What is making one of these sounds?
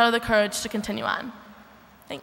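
A young woman speaks into a microphone over loudspeakers in a large echoing hall.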